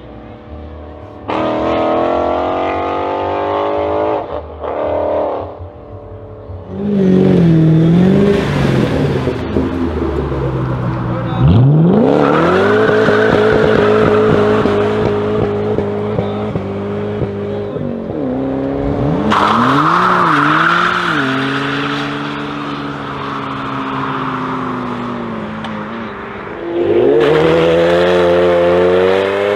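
A powerful car engine roars and revs hard.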